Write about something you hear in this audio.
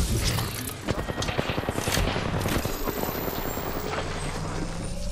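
A video game shield battery charges up with a humming whir.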